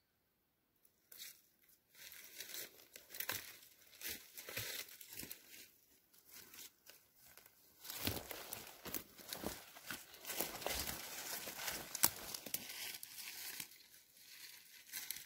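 Footsteps crunch and rustle through dense undergrowth.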